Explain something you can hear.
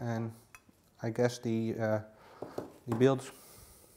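A hard part is set down on a table with a light knock.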